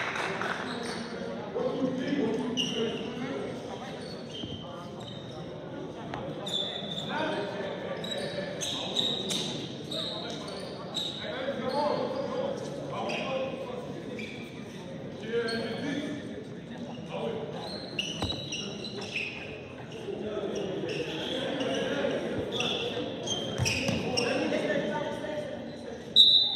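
Young men call out to each other across the gym.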